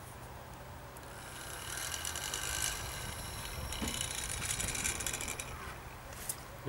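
A plastic bottle crinkles as it is handled.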